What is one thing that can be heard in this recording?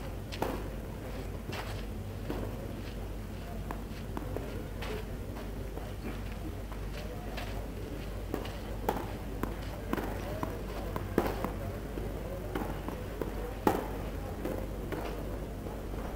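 A tennis ball bounces repeatedly on a clay court.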